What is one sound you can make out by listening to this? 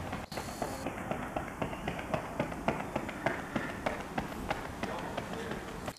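A runner's shoes patter quickly on a rubber track, coming closer.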